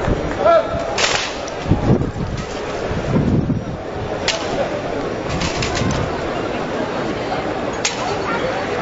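Rifles clack sharply as a group of soldiers drills in unison.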